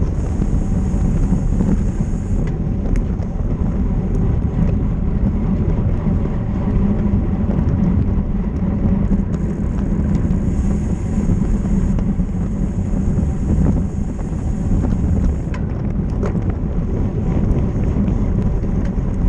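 Bicycle tyres hum on pavement.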